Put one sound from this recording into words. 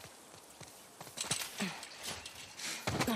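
Leaves and branches rustle loudly as someone climbs over a low fence.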